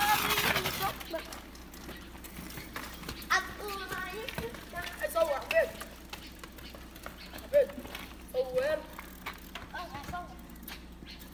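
Bicycle tyres roll over a wet road.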